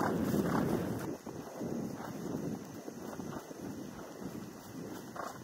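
Hooves thud rhythmically on grass as a horse gallops close by.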